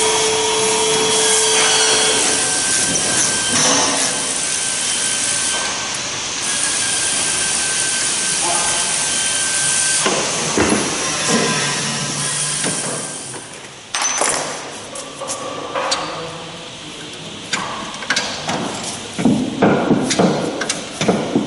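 Metal parts clank and rattle against a brake disc.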